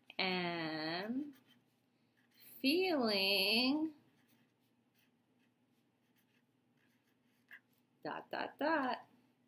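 A crayon scratches across paper.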